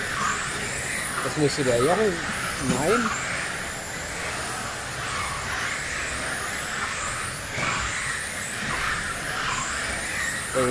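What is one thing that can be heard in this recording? Small electric model cars whine and buzz as they race past, their motors rising and falling in pitch.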